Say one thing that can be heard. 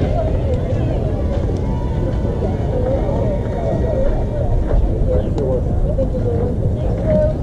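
A group of young girls chatter and call out nearby.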